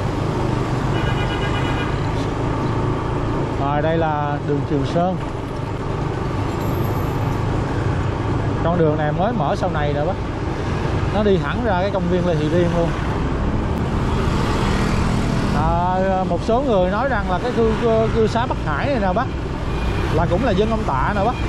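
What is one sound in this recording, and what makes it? Other motorbikes and cars pass by in traffic.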